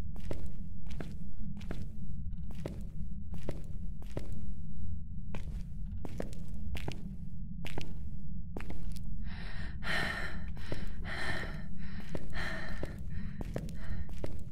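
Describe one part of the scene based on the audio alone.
Footsteps thud at a steady pace on a hard floor.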